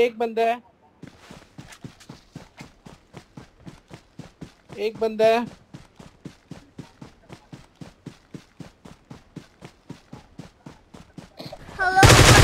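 Footsteps swish quickly through tall grass.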